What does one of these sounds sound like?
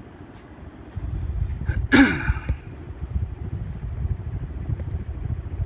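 Air from a ceiling fan rumbles against the microphone up close.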